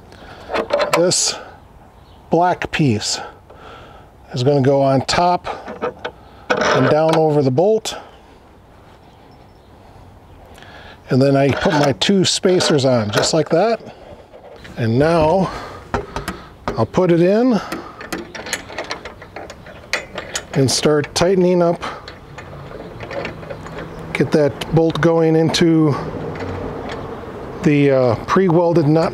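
Metal parts clink and tap together.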